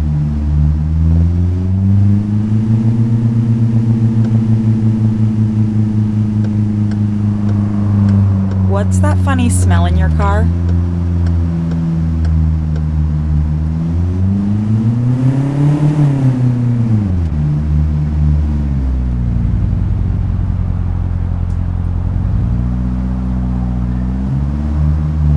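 A car engine hums steadily and revs up and down.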